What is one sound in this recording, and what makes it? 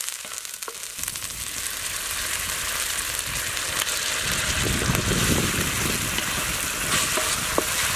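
A metal spatula scrapes and stirs rice in a pan.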